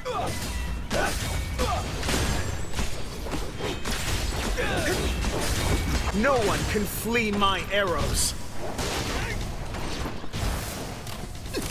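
Swords slash and clang in a fight.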